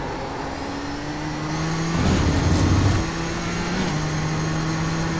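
A racing car engine drones steadily, its pitch shifting as the car changes gear.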